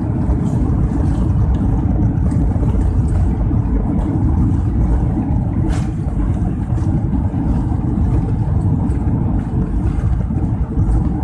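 Heavy rain lashes against an aircraft window.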